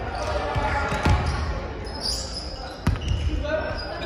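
A volleyball is struck with sharp slaps that echo through a large hall.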